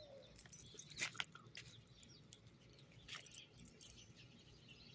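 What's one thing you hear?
Metal dog tags jingle on a collar.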